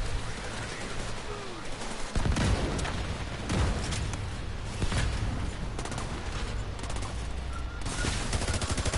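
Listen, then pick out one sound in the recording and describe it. Guns fire in rapid bursts nearby.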